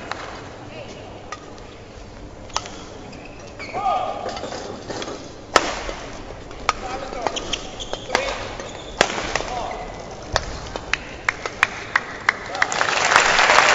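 Badminton rackets smack a shuttlecock back and forth.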